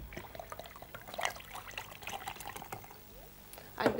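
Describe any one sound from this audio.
Liquid pours from a bottle into a container.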